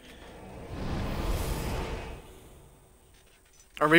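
A low whooshing rush swells and fades away.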